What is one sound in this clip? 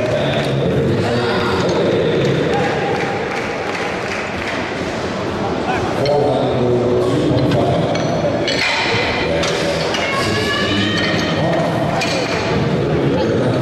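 Metal weight plates clank onto a barbell.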